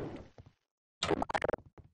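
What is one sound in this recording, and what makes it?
A rifle fires a quick burst.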